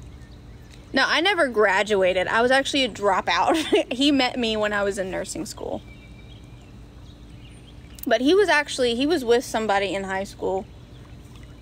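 A young woman talks calmly, close to the microphone.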